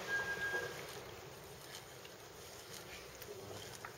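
A fishing reel whirs and clicks as its handle is turned.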